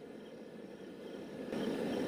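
A gas burner flame hisses softly.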